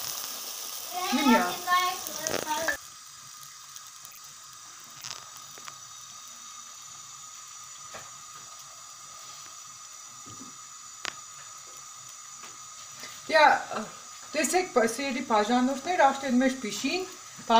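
Oil sizzles and bubbles steadily as dough fries.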